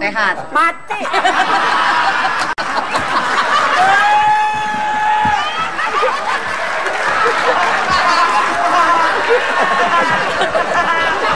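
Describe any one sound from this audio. Several people laugh loudly together.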